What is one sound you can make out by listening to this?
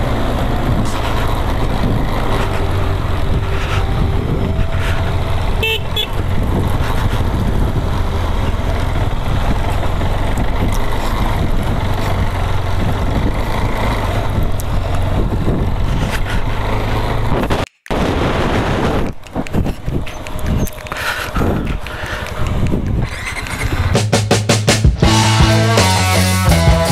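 A single-cylinder adventure motorcycle engine rumbles while riding.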